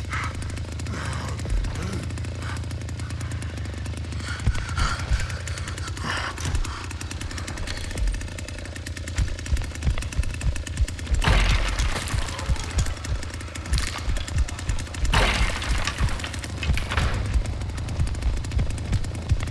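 A chainsaw engine idles with a low, steady rumble.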